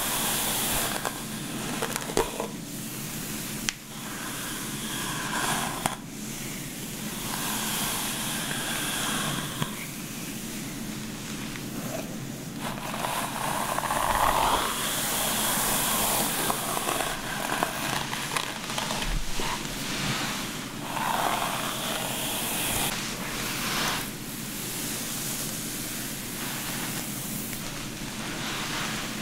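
Fingers rustle softly through damp hair, close by.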